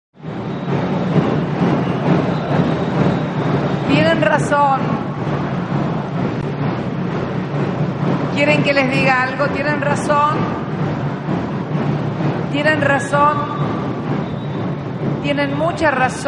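A woman speaks into a microphone over a loudspeaker.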